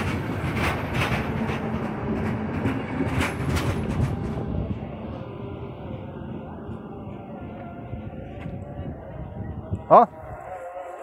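A train rumbles past close by and fades away.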